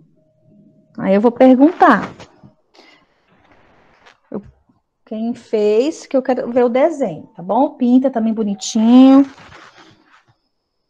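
A woman speaks calmly and with expression through an online call.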